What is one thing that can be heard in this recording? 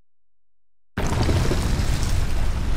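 Dust and earth burst up with a loud crash.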